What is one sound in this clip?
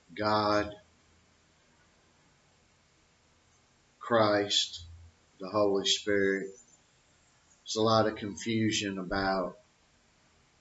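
An older man speaks calmly into a close microphone, in short bursts with pauses.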